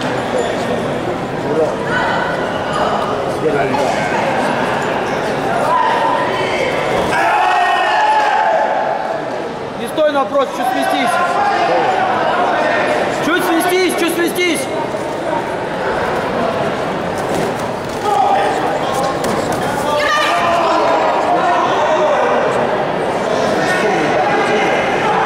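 A crowd in a large echoing hall chatters and shouts.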